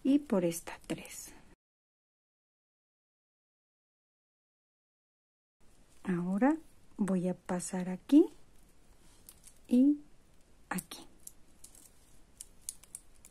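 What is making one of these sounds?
Plastic beads click softly against each other as they are threaded.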